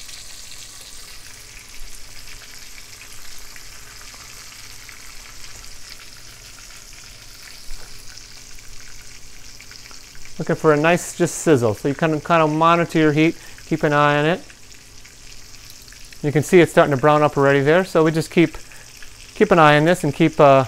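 A spatula scrapes in a frying pan.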